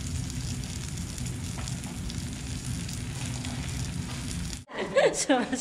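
Meat slices sizzle steadily in a hot pan.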